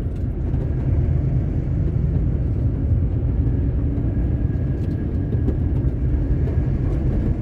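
A vehicle engine hums steadily.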